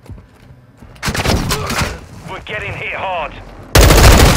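A rifle fires loud bursts of shots.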